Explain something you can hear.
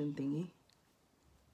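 A woman speaks briefly and calmly close to a microphone.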